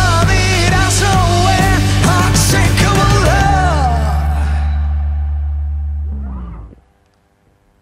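A bass guitar plays a deep line.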